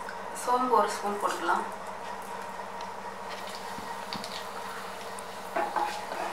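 Seeds sizzle and crackle in hot oil.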